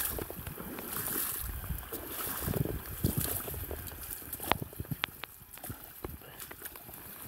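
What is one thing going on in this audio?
Rubber boots splash and slosh through shallow water.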